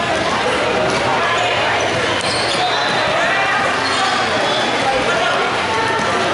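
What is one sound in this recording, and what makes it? Sneakers squeak on an indoor court floor.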